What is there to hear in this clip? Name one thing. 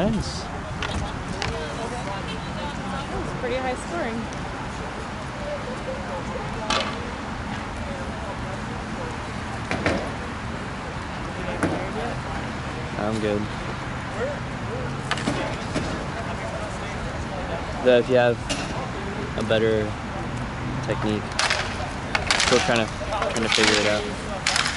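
Skates roll and scrape on an outdoor rink.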